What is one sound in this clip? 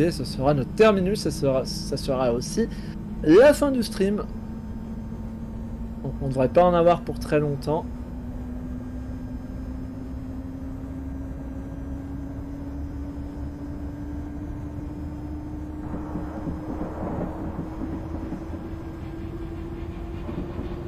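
Train wheels rumble over the rails.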